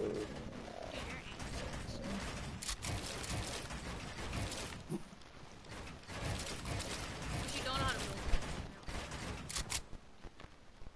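Building pieces snap into place with rapid clacking knocks.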